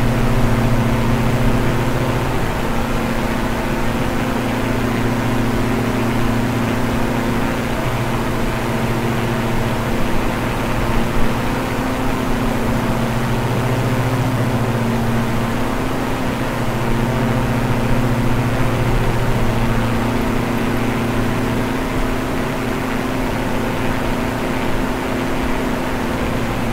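Twin propeller engines drone steadily.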